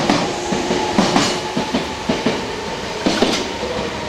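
A train rushes past close by, its wheels clattering over the rails.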